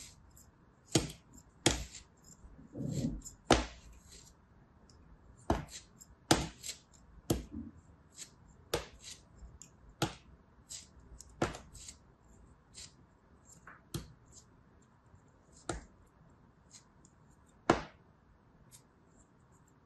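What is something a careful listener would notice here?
A blade slices through soft kinetic sand with crisp, crumbly crunches.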